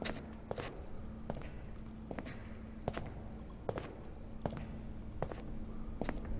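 Footsteps slap on a hard tiled floor at a steady walking pace, echoing in a large room.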